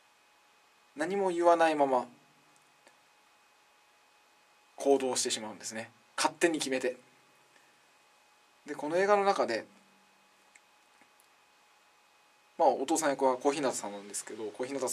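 A young man speaks expressively in short bursts with pauses, close by.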